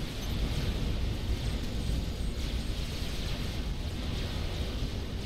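Gunfire and explosions rumble steadily in a large battle.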